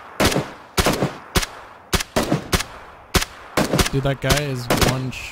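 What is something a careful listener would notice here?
A rifle fires single shots in quick succession, each with a sharp crack and short echo.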